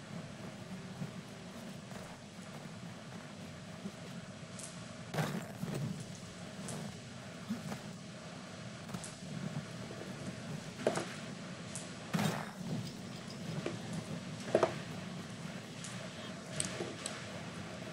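Wind howls through a snowstorm.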